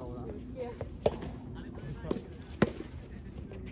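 Tennis balls are struck with rackets with sharp pops.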